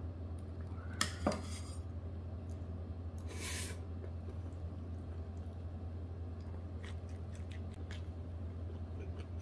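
A man slurps and chews food up close.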